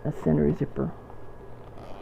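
A zipper is pulled open.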